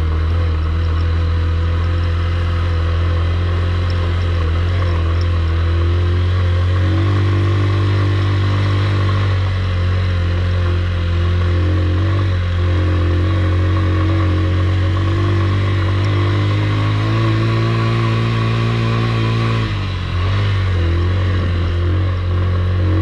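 A single-cylinder commuter motorcycle engine labours as it climbs uphill.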